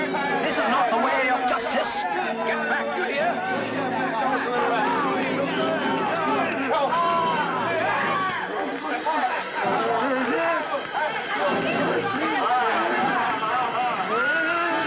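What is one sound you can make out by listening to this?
A crowd of men and women shout and cry out in alarm.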